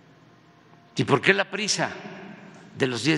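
An elderly man speaks with animation into a microphone.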